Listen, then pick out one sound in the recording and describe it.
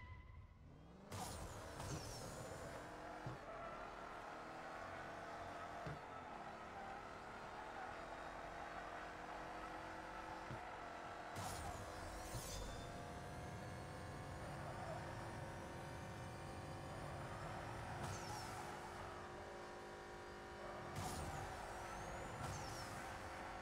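A car engine roars and climbs steadily in pitch as the car speeds away.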